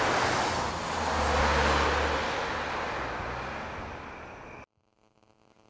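Traffic rushes past on a nearby road.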